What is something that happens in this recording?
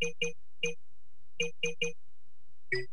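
Short chiming menu blips sound as a selection moves from item to item.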